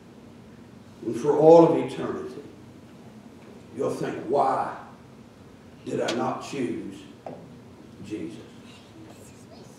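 A man speaks slowly through a microphone in an echoing hall, with long pauses.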